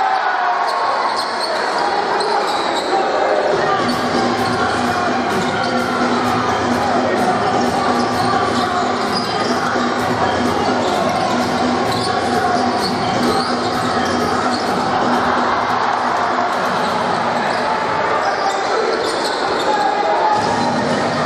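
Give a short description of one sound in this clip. A large crowd murmurs and cheers in an echoing indoor hall.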